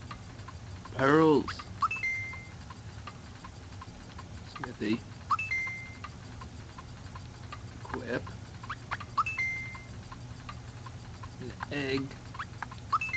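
A young man speaks briefly and calmly near a microphone.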